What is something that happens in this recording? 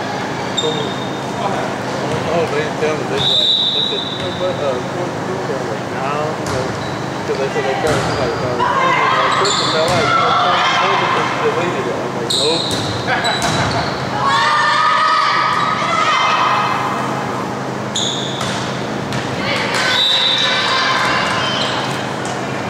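A volleyball is struck by hand.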